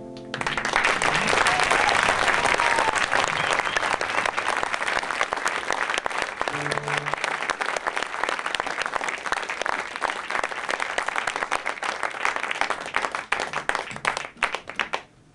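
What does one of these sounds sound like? A man strums an acoustic guitar.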